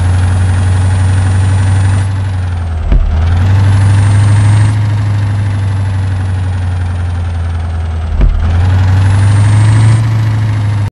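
A bus engine hums steadily as the bus drives slowly.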